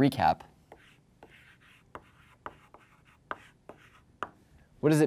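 Chalk scrapes and taps on a board.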